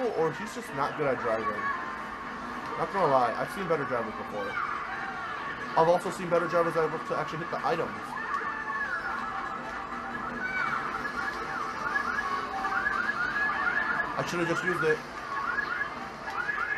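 Upbeat game music plays through a television speaker.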